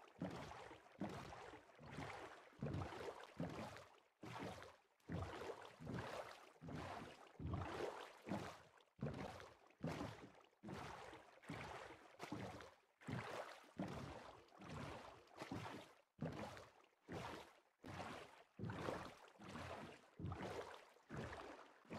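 Oars splash rhythmically in water as a small boat is rowed.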